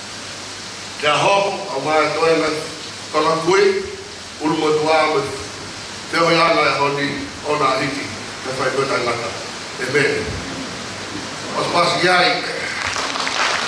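A middle-aged man speaks with feeling into a microphone, heard through loudspeakers.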